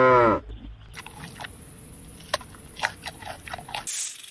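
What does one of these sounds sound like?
A panda crunches and chews bamboo.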